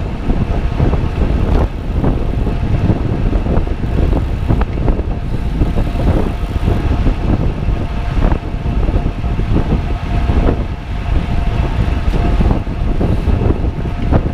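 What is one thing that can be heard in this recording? Wind roars loudly across the microphone.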